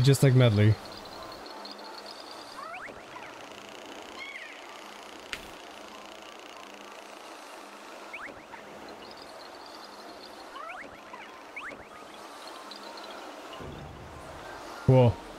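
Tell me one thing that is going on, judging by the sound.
Soft chiming game music plays throughout.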